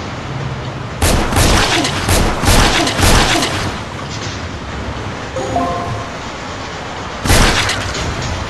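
Gunshots fire in sharp, rapid bursts.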